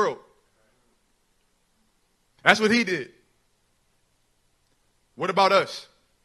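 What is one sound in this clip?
A young man speaks in short phrases through a microphone and loudspeaker.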